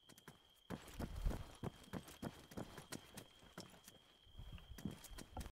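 Footsteps thud quickly across a hollow wooden floor.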